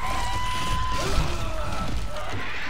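A monstrous creature shrieks and snarls close by.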